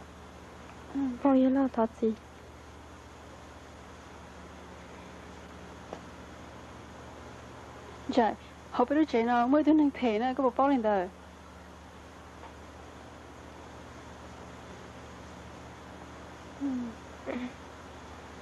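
A young woman speaks softly and tensely, close by.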